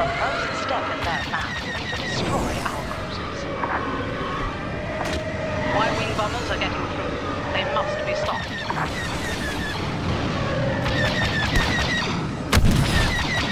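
Starfighter engines roar and whine.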